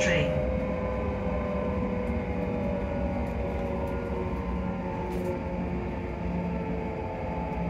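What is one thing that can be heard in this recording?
A train's motor hums with a steady whine.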